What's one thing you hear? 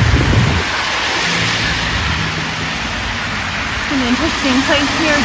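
Car tyres hiss steadily on a wet road.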